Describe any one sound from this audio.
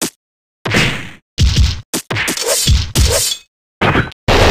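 Punches and kicks thud in quick succession.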